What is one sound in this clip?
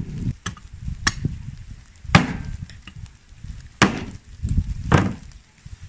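A cleaver chops hard into bone with sharp thuds.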